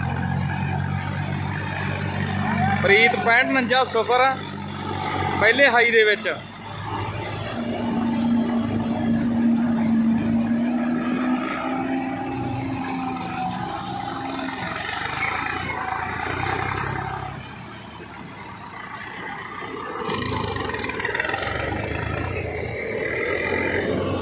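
A harvester whirs and chops maize stalks.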